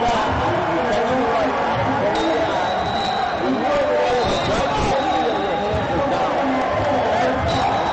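A crowd of spectators chatters and calls out across a large echoing hall.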